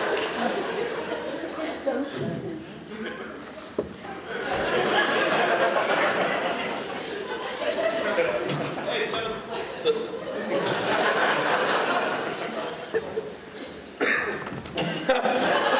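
A young man speaks with animation into a microphone, heard through loudspeakers in a large room.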